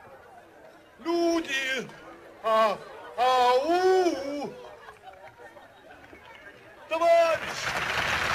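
A man sings loudly in a clear operatic voice.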